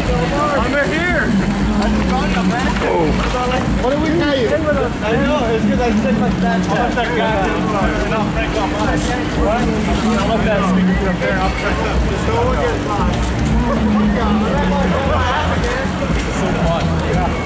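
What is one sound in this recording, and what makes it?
A crowd of young people whoop and shout nearby, outdoors.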